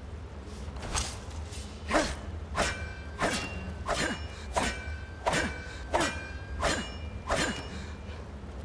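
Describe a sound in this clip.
A pickaxe strikes rock with sharp metallic clinks, again and again.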